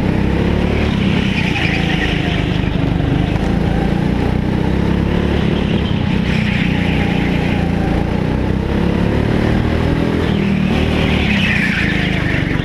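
Kart tyres squeal on a smooth floor through the turns.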